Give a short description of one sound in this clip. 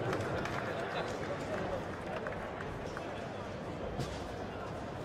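Punches thud against a boxer's body.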